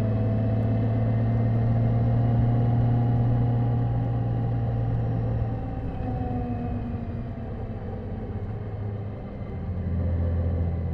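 A motorcycle engine hums steadily, easing off and picking up again.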